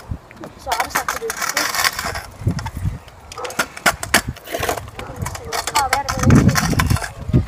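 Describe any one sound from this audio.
Scooter wheels roll and rumble over concrete.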